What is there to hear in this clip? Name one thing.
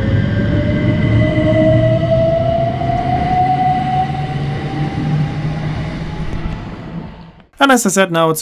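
Train wheels rumble along the rails and fade.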